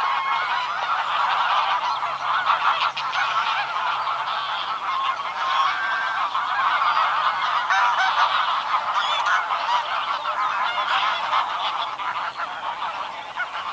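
A flock of geese honks and cackles busily nearby.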